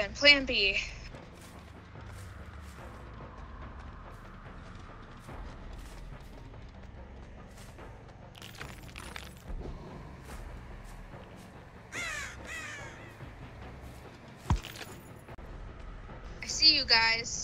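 Footsteps tread softly through grass.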